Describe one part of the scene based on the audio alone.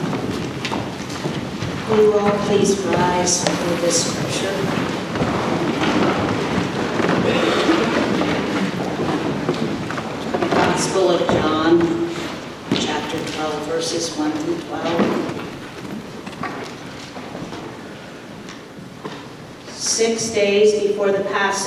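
A woman speaks calmly into a microphone, heard through loudspeakers in a large echoing hall.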